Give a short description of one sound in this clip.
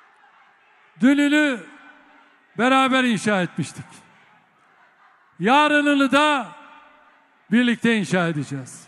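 A large crowd chants loudly in rhythmic bursts.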